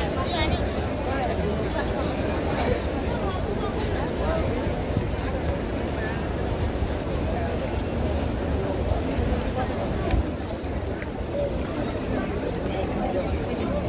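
A large crowd of men and women murmurs and talks outdoors.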